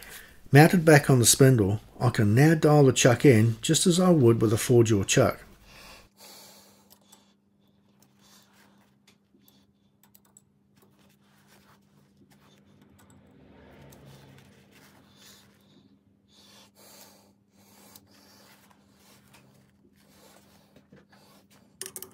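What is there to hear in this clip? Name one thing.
A cloth rubs softly against a metal surface.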